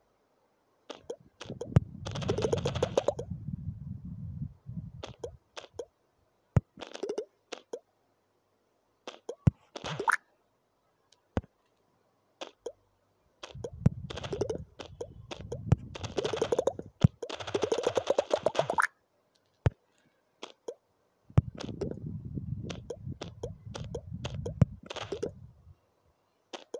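Blocks shatter in rapid crunching bursts.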